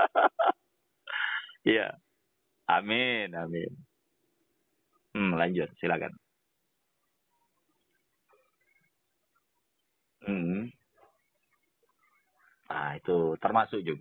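A middle-aged man speaks calmly with long pauses, heard through a broadcast microphone.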